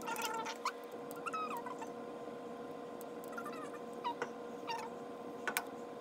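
Paint squelches softly as it is squeezed from a plastic bottle into a cup.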